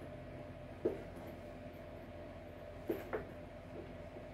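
Leather shoes knock and tap together as they are handled.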